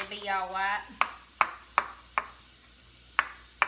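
A knife taps and cuts on a wooden board.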